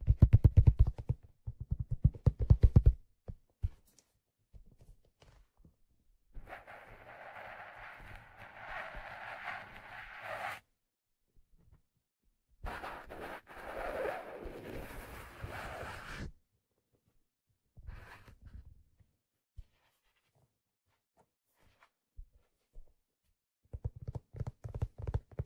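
Fingers tap rapidly on a stiff hat close to a microphone.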